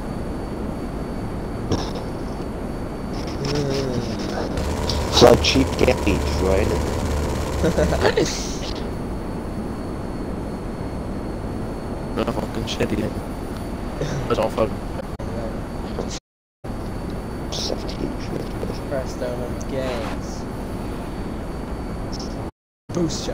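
A jet engine roars steadily.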